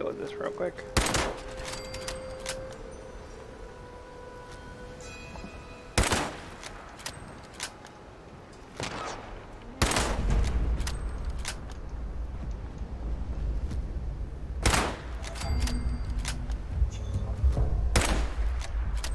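Single gunshots ring out, one at a time, with a few seconds between them.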